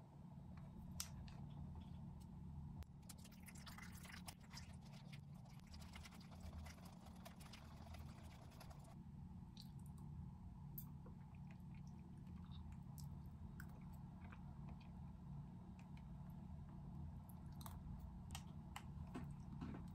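Chopsticks tap and scrape inside a plastic cup.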